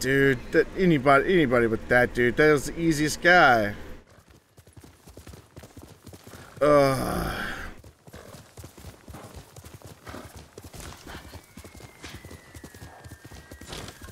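A horse's hooves gallop over soft ground.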